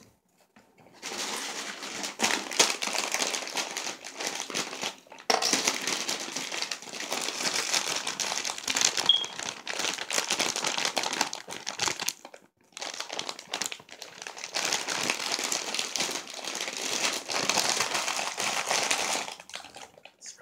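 A plastic bag crinkles loudly.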